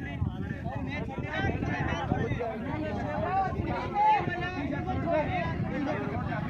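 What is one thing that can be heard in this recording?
A crowd of men and boys chatter and shout outdoors.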